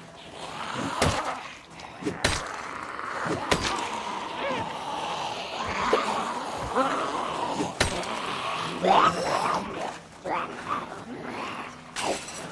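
A weapon strikes with sharp, heavy thuds again and again.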